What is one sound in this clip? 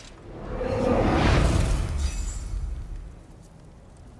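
A deep magical rumble swells and fades.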